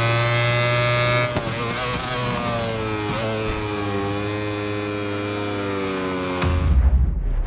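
A racing motorcycle engine screams at high revs, dropping in pitch as it shifts down.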